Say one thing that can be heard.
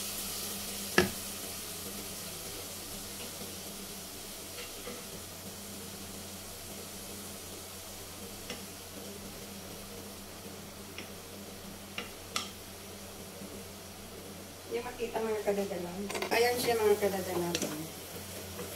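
A wooden spoon scrapes and clacks against a pot.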